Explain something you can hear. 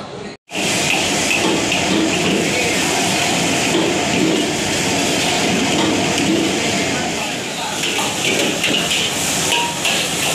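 A metal ladle scrapes and clanks in a wok.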